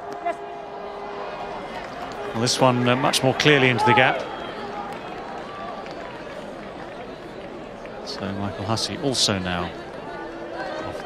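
A large crowd murmurs softly in an open stadium.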